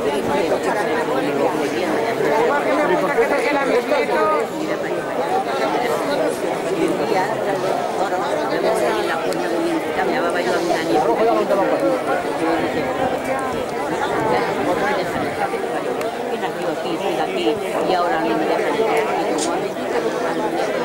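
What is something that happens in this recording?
A crowd of men and women talks and calls out outdoors.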